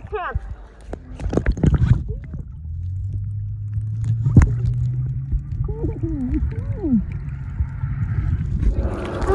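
Bubbles splash and gurgle as a swimmer strokes through water.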